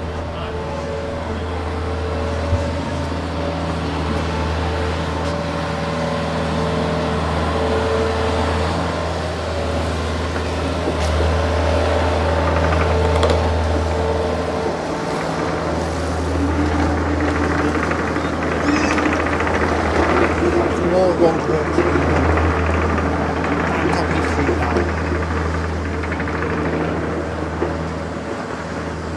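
A digger's diesel engine rumbles steadily nearby, outdoors on a street.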